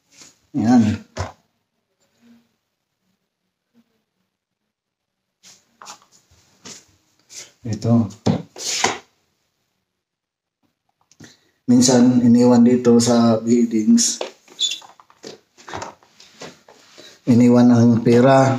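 A man talks close to the microphone, calmly and in short bursts.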